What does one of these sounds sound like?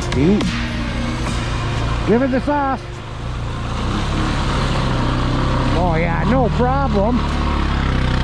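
An all-terrain vehicle engine revs up and down in short bursts.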